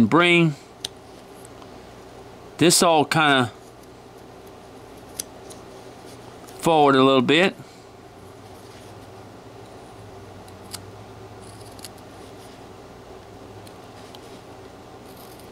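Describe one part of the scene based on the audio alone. A small knife shaves and scrapes wood, with faint soft clicks.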